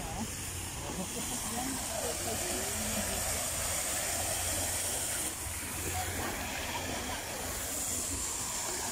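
Water from a fountain splashes and patters steadily.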